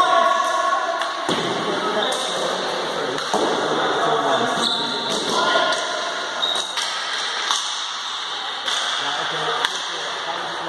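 Plastic sticks clack against a ball and against each other in a large echoing hall.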